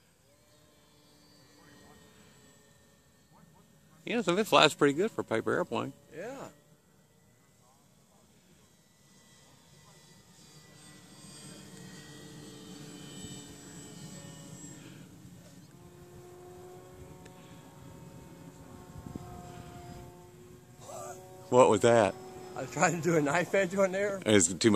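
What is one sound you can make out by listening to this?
A small model plane engine drones overhead, rising and falling in pitch.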